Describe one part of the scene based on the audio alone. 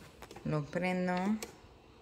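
A button on a coffee maker clicks.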